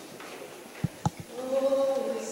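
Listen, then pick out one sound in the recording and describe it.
A young woman begins to sing through a microphone and loudspeakers in a large echoing hall.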